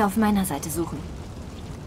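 A young woman speaks briefly and calmly.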